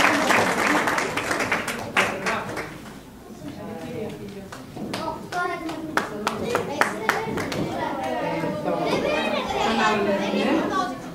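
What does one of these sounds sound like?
Children chatter and shout excitedly in a room.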